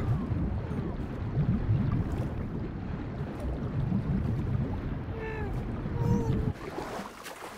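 A deep muffled rumble of moving water sounds underwater.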